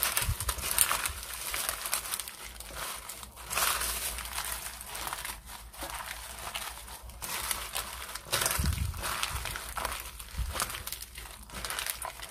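Plastic gloves rustle and crinkle.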